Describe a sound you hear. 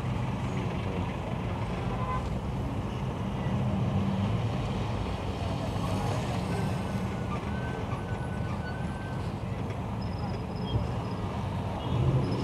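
An engine rumbles steadily in slow traffic.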